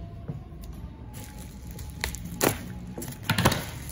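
Scissors cut into tape-wrapped plastic.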